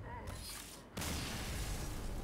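A magical burst crashes loudly.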